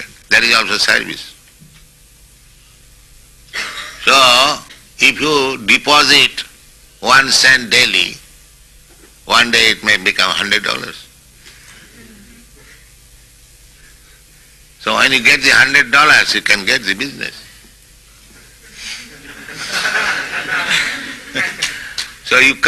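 An elderly man speaks slowly and calmly in short phrases with pauses between them.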